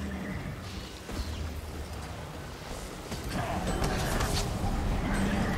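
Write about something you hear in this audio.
Fiery explosions burst with a loud whoosh.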